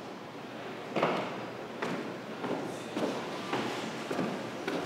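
Footsteps tap on hard stairs.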